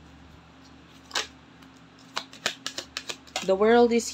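A deck of cards is shuffled, the cards clicking and slapping together.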